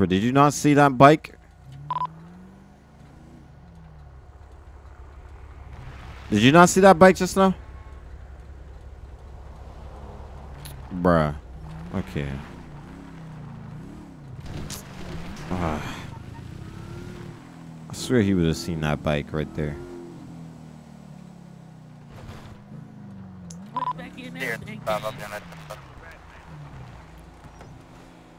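A car engine hums and revs up and down as the vehicle drives.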